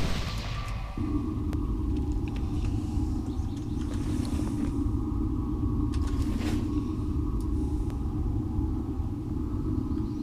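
A magic spell hums steadily as it is cast.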